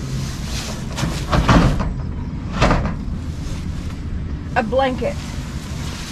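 A cloth sheet rustles as it is pulled out and dragged.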